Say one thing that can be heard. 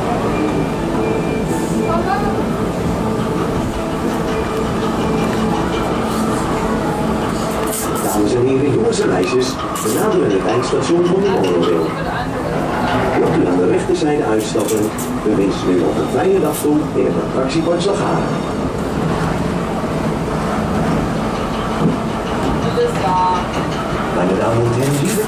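A small train engine hums steadily while rolling along.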